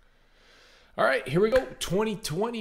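A man speaks with animation into a close microphone.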